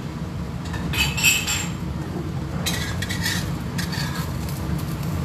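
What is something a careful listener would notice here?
A metal spatula scrapes against a frying pan.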